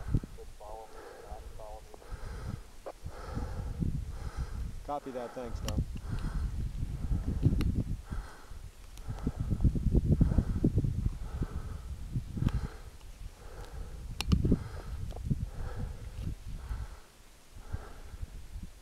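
Wind gusts across an open mountainside, buffeting the microphone.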